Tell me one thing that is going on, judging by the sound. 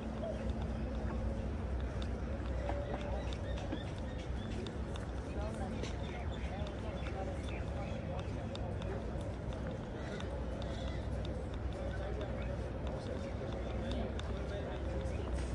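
Footsteps tap on a hard walkway.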